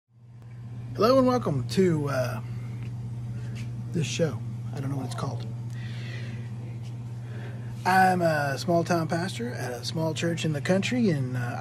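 A middle-aged man talks animatedly close to the microphone.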